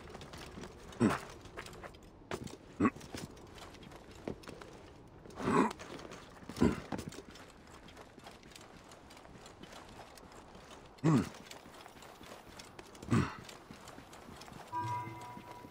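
Hands and feet thump and scrape against rock while climbing.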